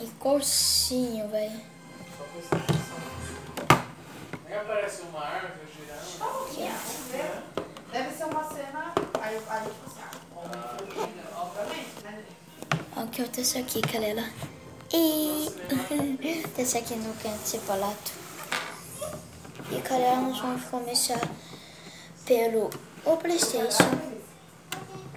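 A boy talks with animation, close by.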